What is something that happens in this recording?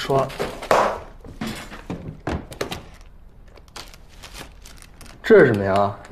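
Objects rustle and clatter as they are packed into a plastic box.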